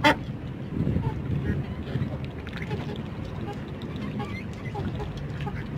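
A duck pecks and dabbles noisily at food in a metal dish.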